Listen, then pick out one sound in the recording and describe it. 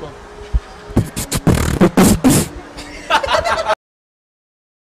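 Young men laugh loudly together.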